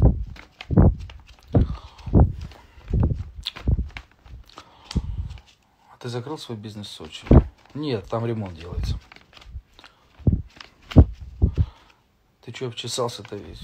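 A young man speaks calmly and close to a phone microphone.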